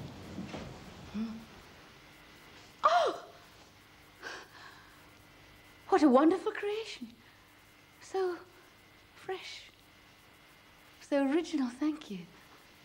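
A middle-aged woman speaks loudly and with emotion, close by.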